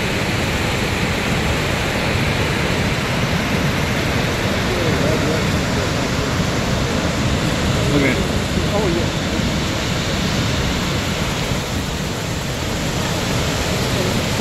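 A large waterfall roars as it thunders into a churning pool.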